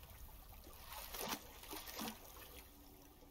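A wooden boat scrapes onto a muddy bank.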